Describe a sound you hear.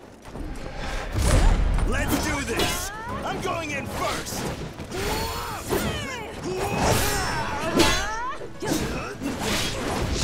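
Metal blades clash and ring sharply again and again.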